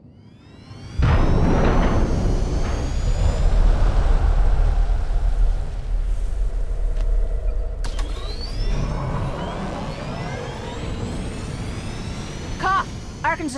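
A spaceship engine roars steadily.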